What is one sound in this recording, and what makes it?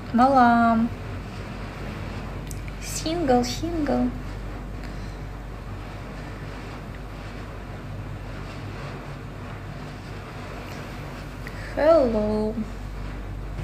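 A young woman speaks softly and close, in short drawn-out phrases.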